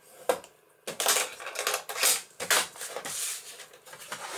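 A paper trimmer blade slides along and cuts through paper.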